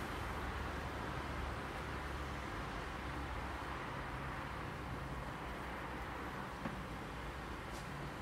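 Bees buzz steadily from an open hive.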